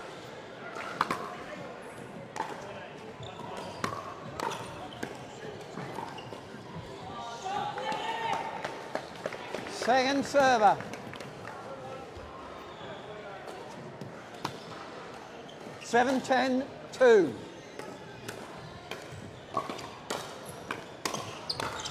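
Paddles strike a plastic ball with sharp pops in a large echoing hall.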